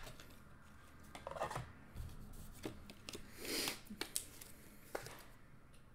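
Trading cards rustle and click as they are handled.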